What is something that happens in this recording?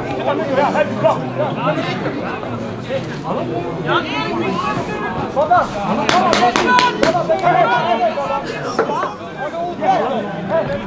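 Young men shout and call to each other across an open outdoor pitch.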